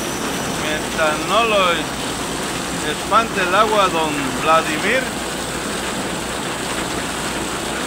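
Water streams off an awning and splashes onto wet pavement.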